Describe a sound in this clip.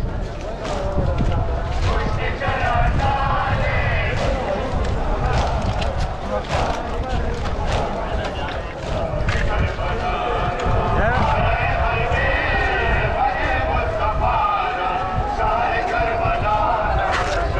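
A large crowd of men and women chants and murmurs outdoors.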